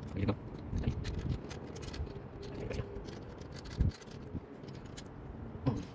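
A small screwdriver turns a screw with faint metallic clicks.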